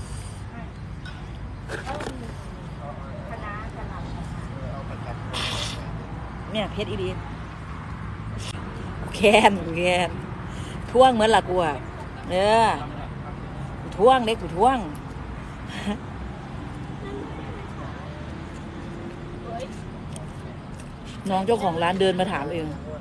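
A young woman talks with animation, close to the microphone.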